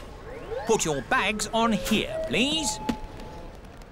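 A man speaks cheerfully and close by.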